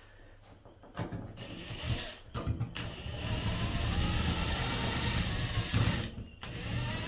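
A cordless impact driver whirs as it drives a screw into a wall.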